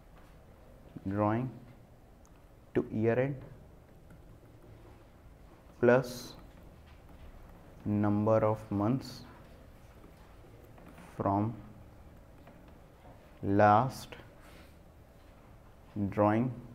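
A man speaks calmly into a close microphone in short phrases with pauses.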